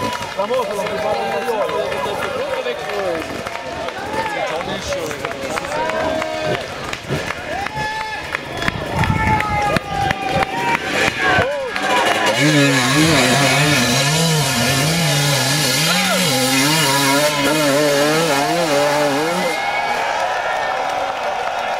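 A crowd shouts and cheers outdoors.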